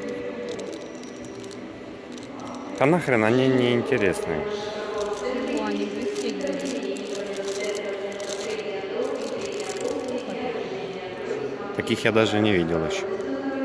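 Plastic packaging rustles and crinkles in a hand.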